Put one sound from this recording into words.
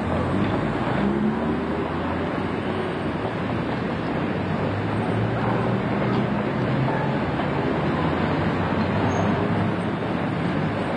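A bus engine rumbles as the bus drives slowly toward the listener.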